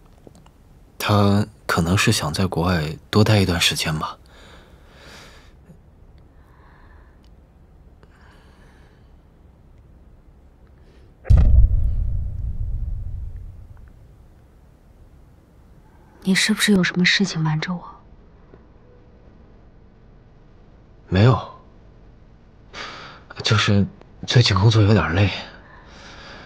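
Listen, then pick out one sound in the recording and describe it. A young man speaks quietly and gently, close by.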